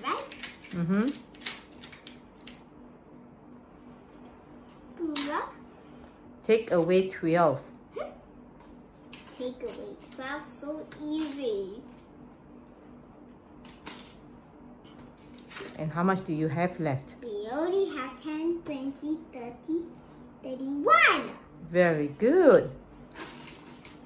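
A young girl talks and sings playfully close by.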